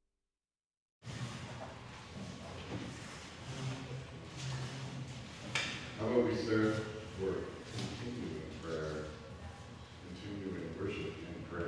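A middle-aged man speaks calmly through a headset microphone.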